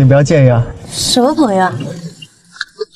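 A young woman asks a short question up close.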